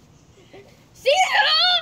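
A boy shouts loudly in a high voice close by.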